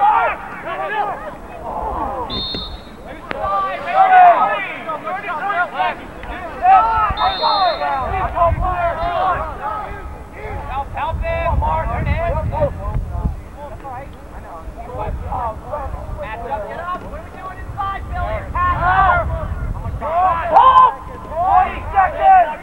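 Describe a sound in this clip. Several young men talk and call out nearby outdoors.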